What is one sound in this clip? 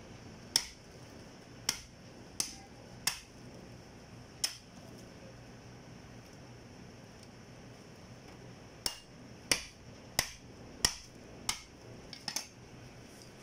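A cleaver chops through meat and bone in sharp thuds.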